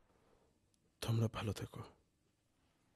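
A man talks on a phone, close by.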